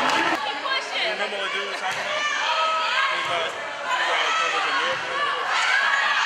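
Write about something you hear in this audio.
A crowd of young women and spectators shout and cheer in an echoing hall.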